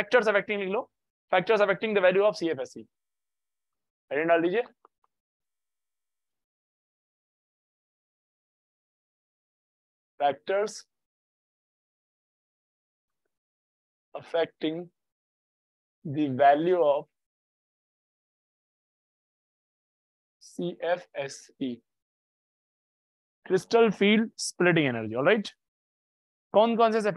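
A young man speaks calmly into a microphone, in short bursts with pauses.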